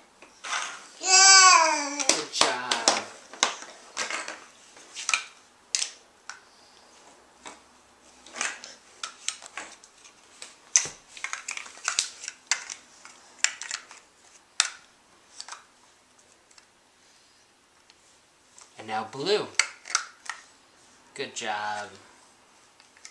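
A baby babbles and squeals in a high voice.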